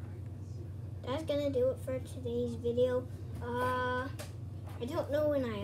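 A young boy talks close by, with animation.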